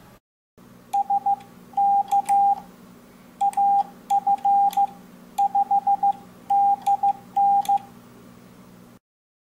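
A keyer paddle clicks softly under tapping fingers.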